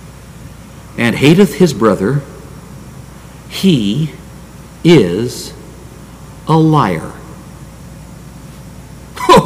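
An elderly man speaks slowly and emphatically into a microphone, with pauses between phrases.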